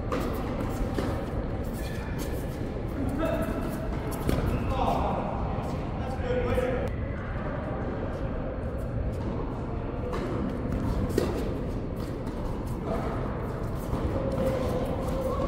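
Paddles strike a ball with sharp pops in a large echoing hall.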